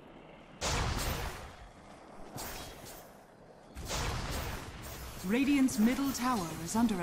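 Fantasy battle sounds whoosh and crash in loud bursts.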